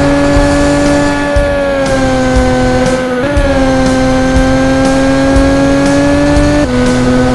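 A racing car engine whines loudly at high revs, dropping briefly with each gear change.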